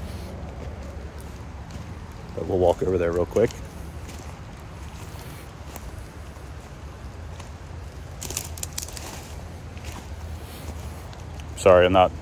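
Footsteps crunch through dry fallen leaves.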